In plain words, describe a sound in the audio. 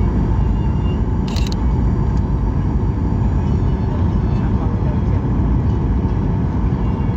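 Jet engines roar steadily with a deep rumble from inside an aircraft cabin.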